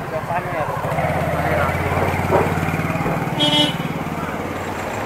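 A motorcycle engine hums close by.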